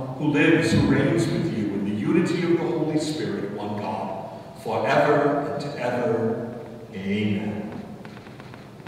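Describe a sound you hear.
A man reads aloud through a microphone in an echoing room.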